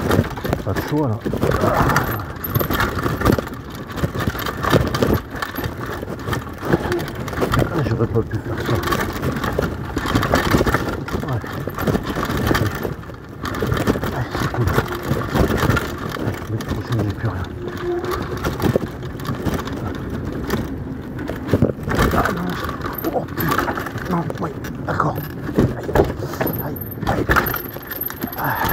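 Bicycle tyres rumble and rattle fast over a rough dirt trail.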